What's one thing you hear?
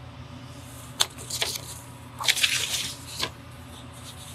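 A sheet of paper rustles and slides as it is moved.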